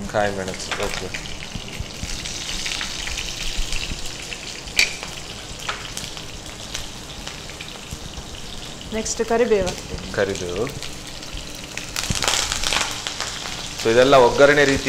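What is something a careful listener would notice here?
Vegetables sizzle and hiss as they fry in hot oil.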